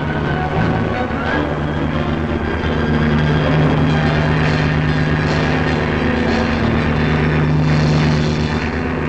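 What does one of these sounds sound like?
Propeller aircraft engines drone steadily.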